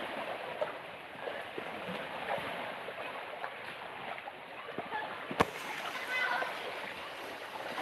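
Water splashes as a boy wades through the shallows.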